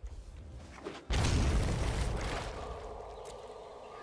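A digital card game plays a whooshing effect as cards are played.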